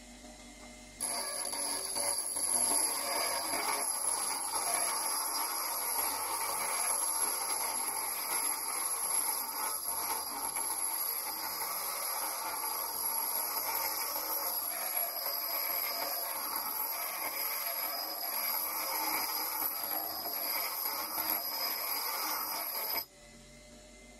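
Metal grinds harshly against a spinning grinding wheel.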